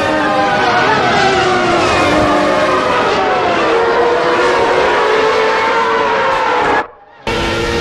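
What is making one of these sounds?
Racing car engines scream at high revs, rising and falling as the gears change.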